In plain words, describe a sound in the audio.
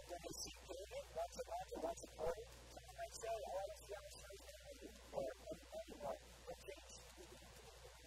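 A man speaks with animation into a clip-on microphone.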